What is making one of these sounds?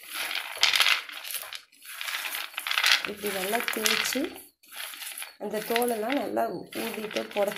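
A hand rubs and stirs dry peanuts on a plate, making a crisp rustle.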